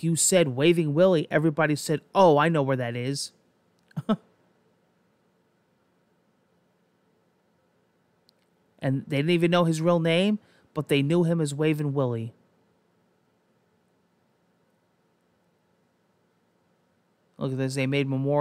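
A man talks calmly into a close microphone, reading out and pausing.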